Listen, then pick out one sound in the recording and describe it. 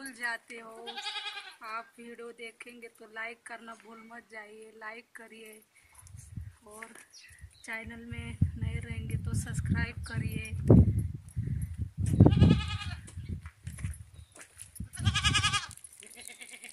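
A goat bleats loudly.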